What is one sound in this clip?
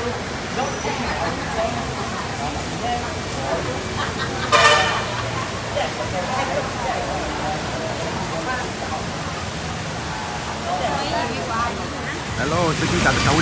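A crowd of men and women chatter at tables nearby.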